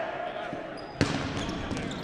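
A rubber ball smacks hard against a body or the floor.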